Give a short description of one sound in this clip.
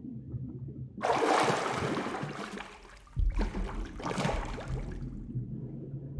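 Water splashes as a figure dives in and swims.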